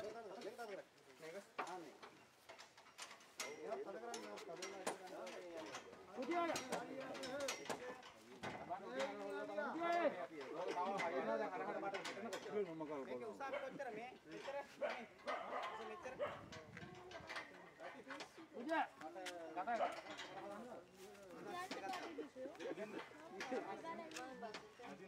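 Several men talk and call out to each other nearby.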